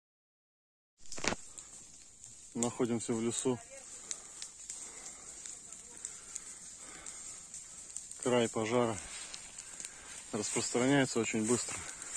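A wildfire crackles and pops through dry undergrowth.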